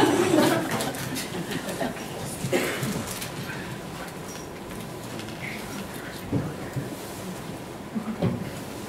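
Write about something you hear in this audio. A woman speaks through a microphone and loudspeakers in an echoing hall.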